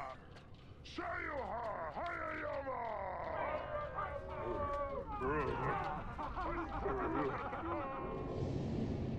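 A group of people chant and whoop with excitement.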